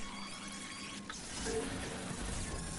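An electric charge crackles and bursts.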